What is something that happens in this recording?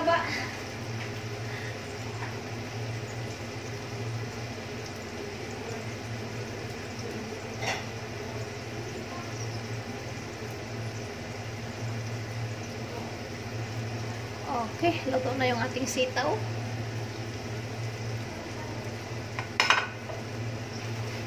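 Food sizzles steadily in a frying pan.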